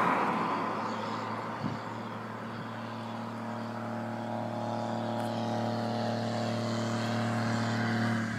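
A vehicle's engine hums in the distance and grows louder as it approaches.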